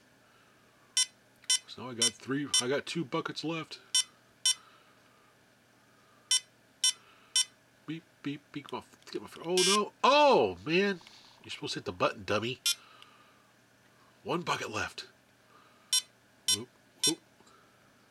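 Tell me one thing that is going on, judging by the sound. A handheld electronic game plays short, high beeps.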